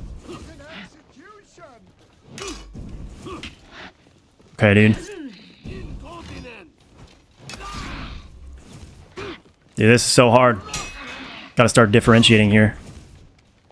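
Metal weapons clash and clang in sharp bursts.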